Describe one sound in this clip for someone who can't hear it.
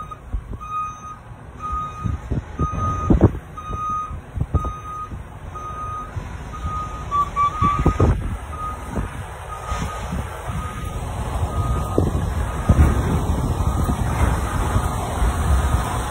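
A large truck rumbles past close by.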